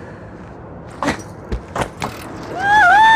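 A metal rope clamp clicks and clatters.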